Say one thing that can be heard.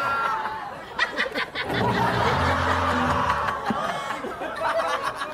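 An audience laughs and cheers.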